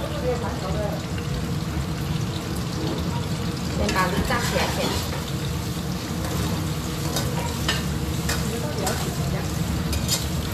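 Oil sizzles and bubbles in a pan.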